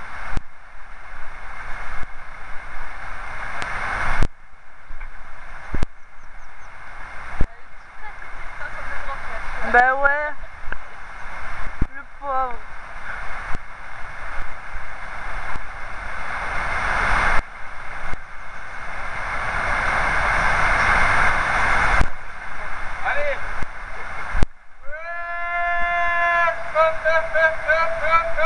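Wind rushes and buffets outdoors.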